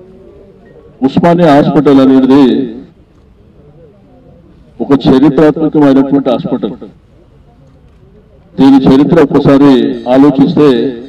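A man speaks loudly into a microphone through a loudspeaker, outdoors.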